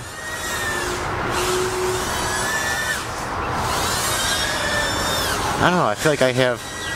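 Drone propellers whine, their pitch rising and falling as the drone swoops.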